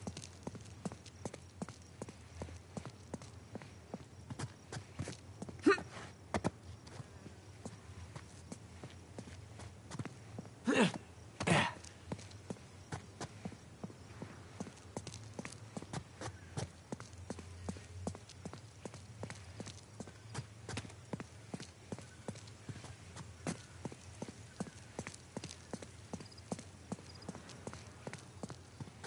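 Footsteps patter quickly on stone paving.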